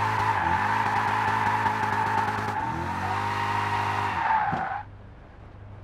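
Tyres squeal as a racing car slides through a bend.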